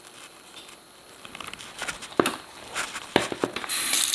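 Chicken pieces rustle and thud softly in flour as they are tossed.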